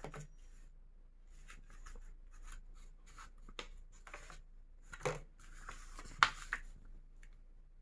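Paper pages rustle and flap as they are turned by hand.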